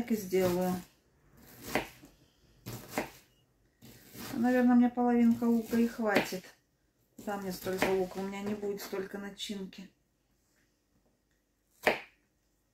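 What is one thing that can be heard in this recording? A knife chops onion on a wooden board with soft taps.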